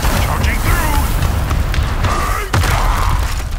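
Game sound effects whoosh and rumble as a character charges forward.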